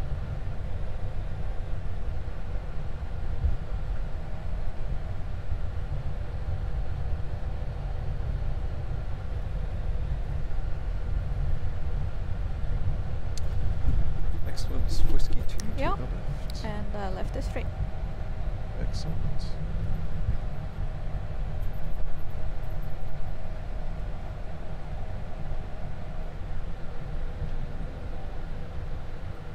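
A jet engine rumbles steadily at idle.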